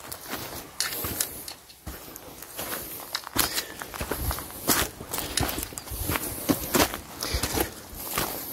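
Footsteps crunch on grass and dry leaves.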